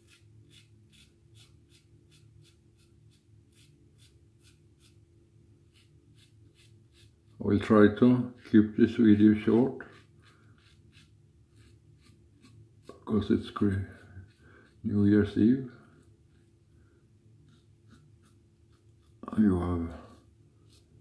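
A razor scrapes against stubble in short, quick strokes.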